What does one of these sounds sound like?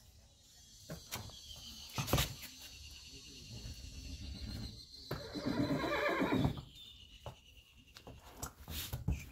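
Horse hooves clop on a hard floor.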